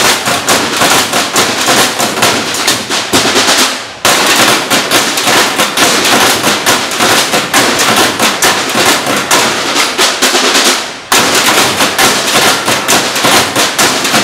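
Wooden xylophones are struck quickly in a lively rhythm outdoors.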